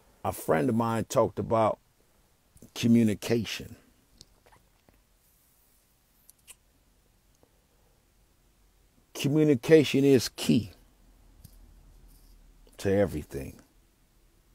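A young man speaks calmly close to a microphone, in short bursts with pauses.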